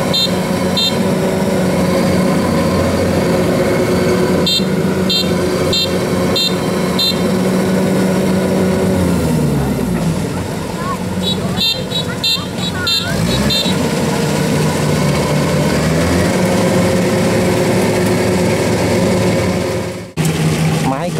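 A combine harvester engine hums loudly and steadily close by.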